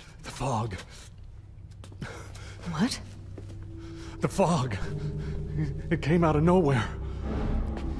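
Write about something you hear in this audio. A man speaks quietly and shakily.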